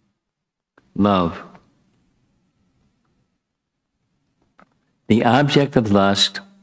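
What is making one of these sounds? An elderly man speaks calmly into a close microphone.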